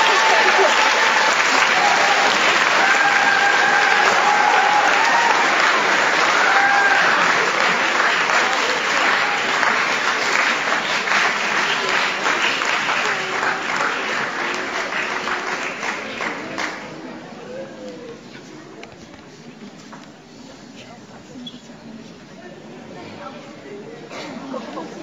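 Children sing together on stage.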